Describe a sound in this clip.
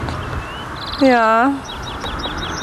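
A man calls out briefly nearby.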